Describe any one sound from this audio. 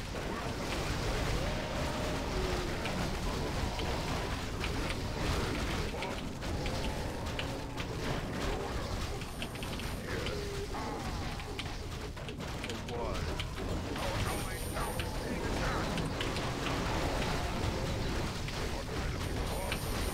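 Weapons clash and spells burst in a game battle.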